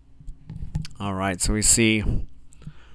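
A man speaks quietly and briefly nearby.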